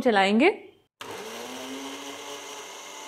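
A blender whirs steadily at high speed.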